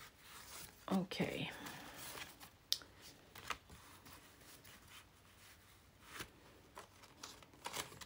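Paper rustles and crinkles as sheets are handled.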